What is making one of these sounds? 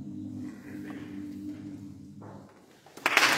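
A men's choir sings a sustained chord in a large echoing hall.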